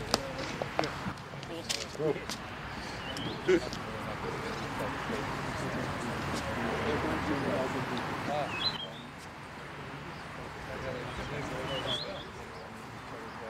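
Several men chat quietly outdoors.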